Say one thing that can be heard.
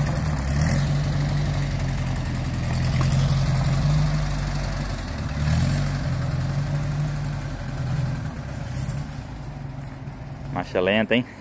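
A small car engine rumbles as the car drives slowly over rough ground.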